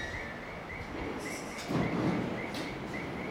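Train doors slide open with a hiss and thud.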